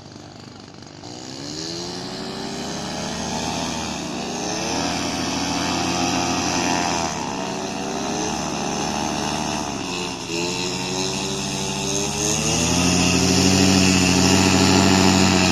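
A paramotor trike's propeller engine revs up and down as it rolls across the ground to take off.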